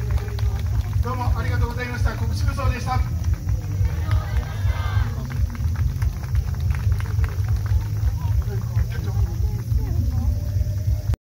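Adults chat nearby in an outdoor crowd.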